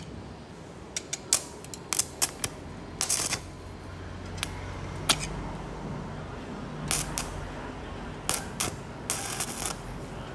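An electric arc welder crackles and sputters in short bursts.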